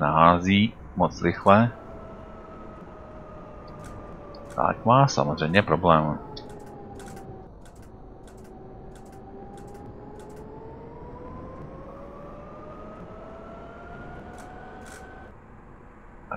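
A tram's electric motor whines, its pitch falling as it slows and then rising again as it speeds up.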